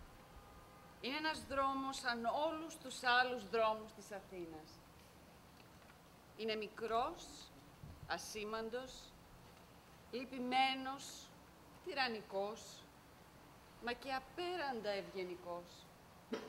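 A young woman reads aloud clearly.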